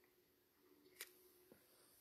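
A small notebook is set down on a table with a soft tap.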